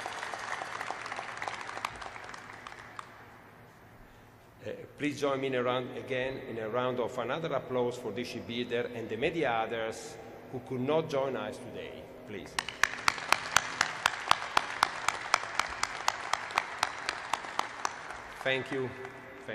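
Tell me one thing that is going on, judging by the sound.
A crowd applauds in a large echoing hall.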